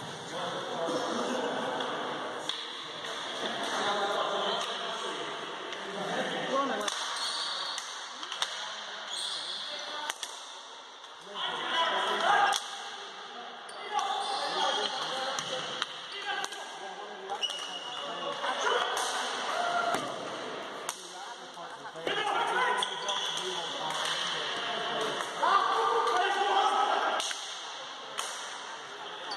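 Hockey sticks clack and tap against a ball and the floor.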